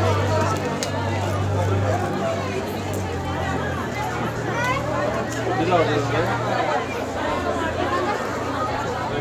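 A crowd of men, women and children chatters nearby outdoors.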